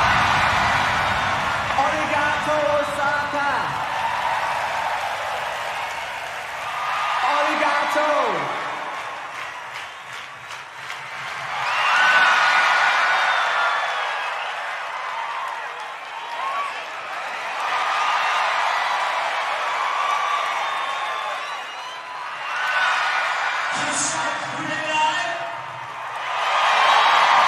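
A man sings into a microphone, loud through loudspeakers in a large echoing hall.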